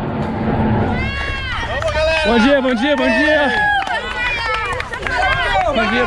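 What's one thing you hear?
Several people cheer and shout loudly.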